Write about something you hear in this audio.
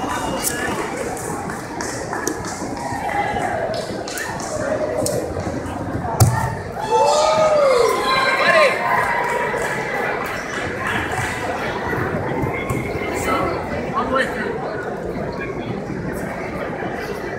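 A crowd of spectators chatters throughout in a large echoing hall.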